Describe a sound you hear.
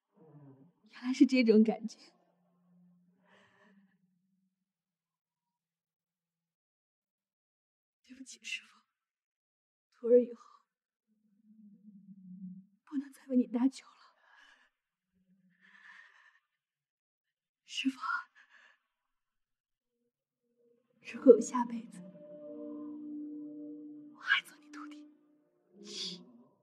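A young woman speaks softly and tearfully, close by.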